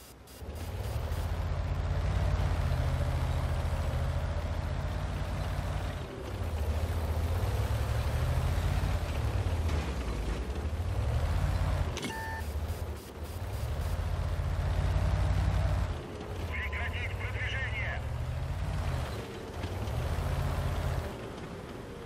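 A heavy tank engine rumbles and roars as the tank drives.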